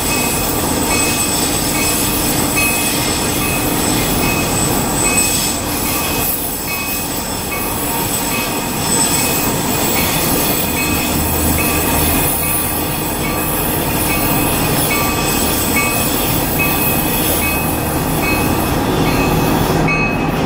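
A car drives along a road with a steady rush of tyre and wind noise.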